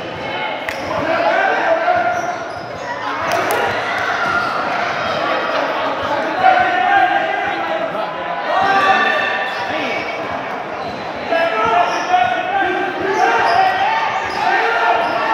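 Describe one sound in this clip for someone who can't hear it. Young women shout and call out across a large echoing gym.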